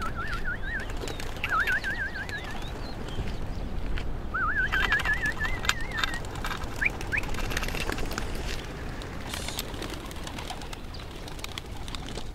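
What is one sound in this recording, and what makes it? Pigeons flap their wings as they take off.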